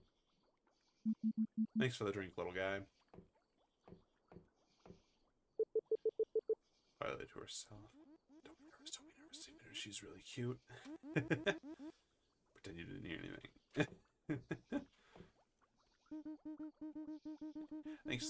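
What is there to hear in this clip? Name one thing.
Short electronic beeps chirp in quick, even runs.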